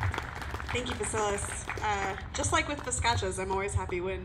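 A woman speaks with animation into a microphone through a loudspeaker.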